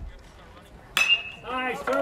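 A metal bat cracks sharply against a baseball.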